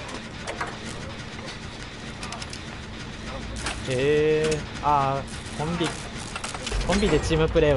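A generator engine hums and rattles steadily.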